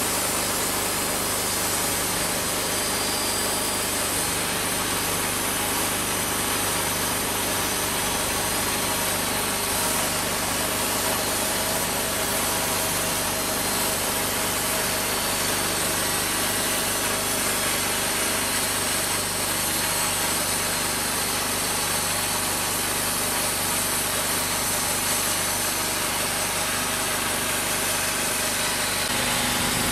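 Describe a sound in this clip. A band sawmill engine runs steadily with a loud whine.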